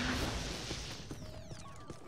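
An electric beam crackles and zaps.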